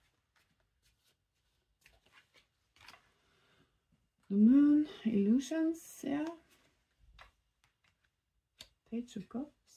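A playing card is slid softly onto a wooden table.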